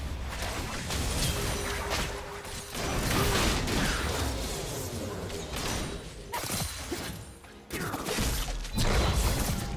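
Magic spells whoosh and burst during a fantasy battle.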